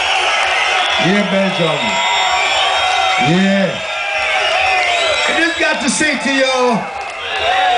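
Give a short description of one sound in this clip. A man chants loudly into a microphone.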